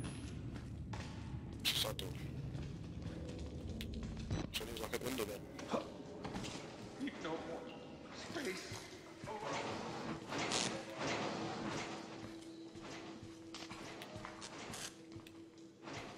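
Footsteps walk slowly along a hard floor.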